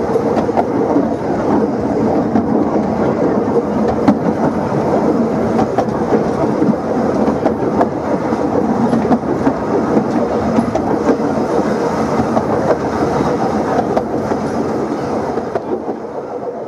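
A small train rumbles steadily along a track.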